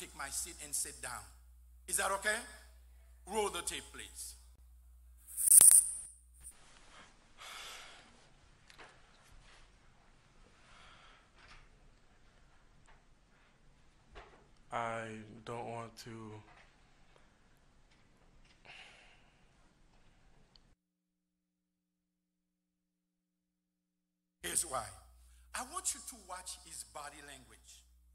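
An elderly man preaches forcefully into a microphone.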